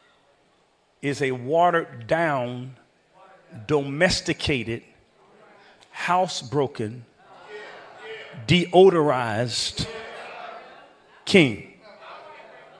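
A man preaches with animation through a microphone, in a large echoing hall.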